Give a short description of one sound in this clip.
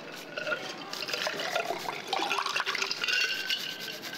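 Water pours from a pitcher into a glass.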